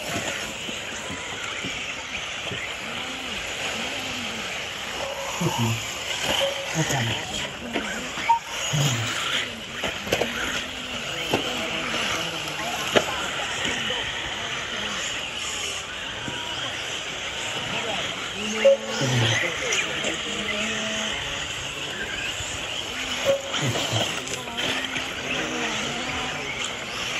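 Small electric model cars whine as they race around a dirt track.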